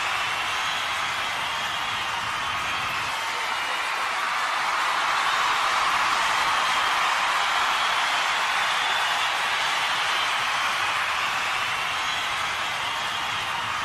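A large crowd cheers loudly and steadily.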